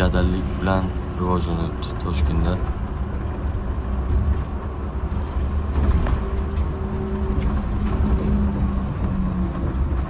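City traffic hums steadily on a busy road nearby.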